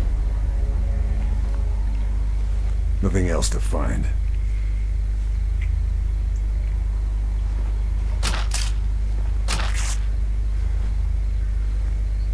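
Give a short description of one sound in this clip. Clothing and gear rustle as a soldier crawls through dry grass.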